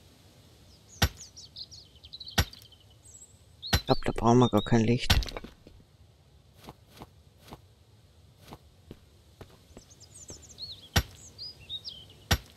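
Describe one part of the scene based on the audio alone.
A pickaxe strikes rock with sharp, ringing knocks.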